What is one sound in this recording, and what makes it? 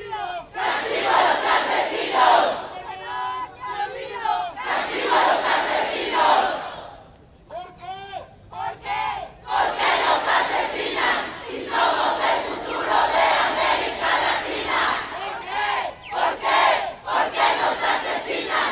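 A large crowd of men and women chants loudly in unison outdoors.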